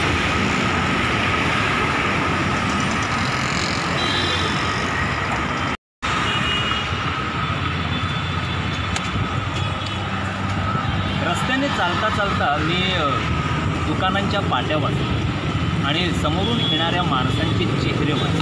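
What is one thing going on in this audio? Traffic rumbles steadily along a road outdoors.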